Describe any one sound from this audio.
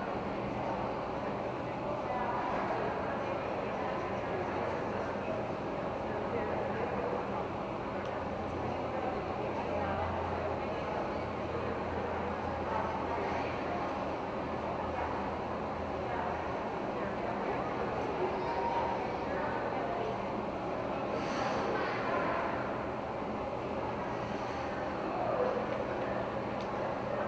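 Spectators murmur and chat in a large echoing hall.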